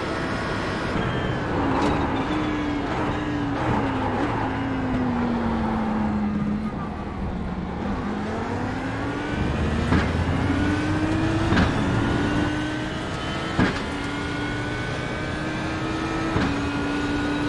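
Gear changes crack sharply as the car shifts down and back up.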